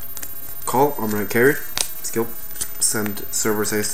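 A playing card is laid down on a soft mat with a light tap.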